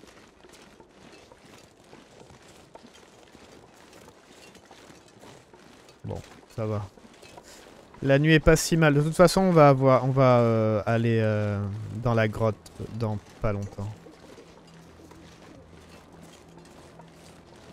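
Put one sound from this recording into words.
Footsteps crunch softly through snow.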